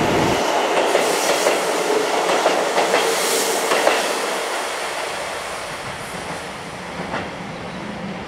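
Train wheels clack over rail joints.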